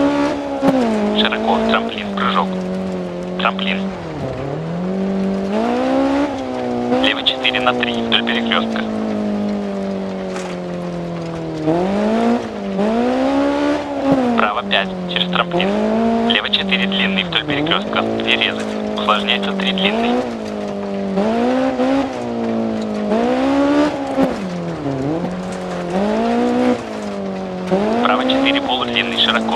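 A rally car engine roars, revving up and dropping with each gear change.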